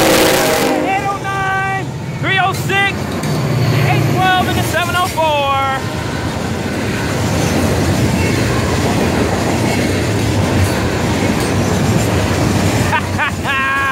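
Steel wheels squeal on the rails.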